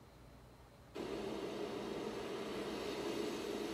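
A smart speaker plays back a programme's sound at moderate volume.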